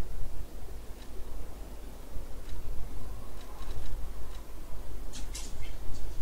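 Short menu ticks sound several times.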